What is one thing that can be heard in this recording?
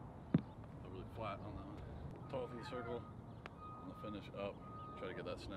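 A man speaks calmly and clearly close by, outdoors.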